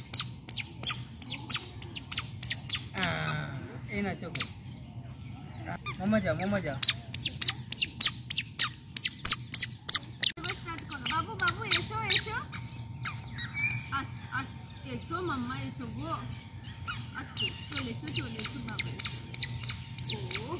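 A small child babbles and squeals nearby.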